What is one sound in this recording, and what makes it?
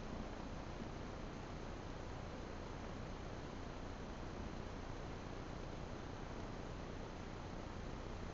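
A lace curtain rustles softly as a small animal pushes through it.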